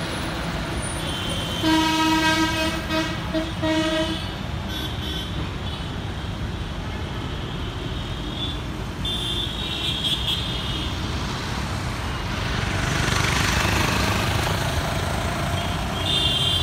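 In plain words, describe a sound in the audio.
An auto-rickshaw putters by.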